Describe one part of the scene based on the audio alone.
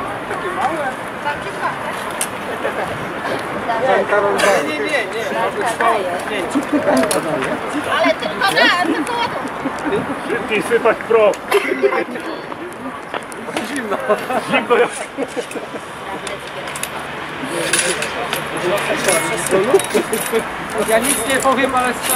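Several men talk and murmur nearby outdoors.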